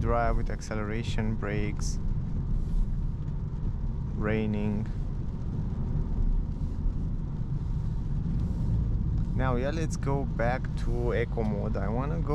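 Tyres roll over a wet road.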